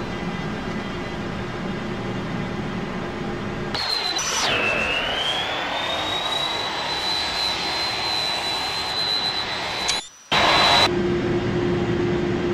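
Jet engines roar steadily.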